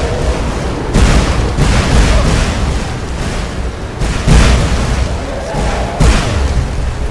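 Heavy burning rocks crash down with loud booms.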